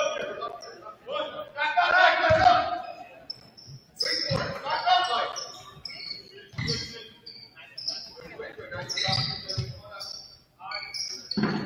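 Spectators and players shout and cheer in an echoing gym.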